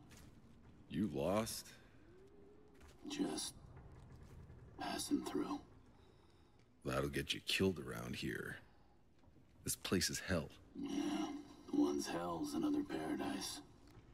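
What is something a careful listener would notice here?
A man speaks calmly and low, close by.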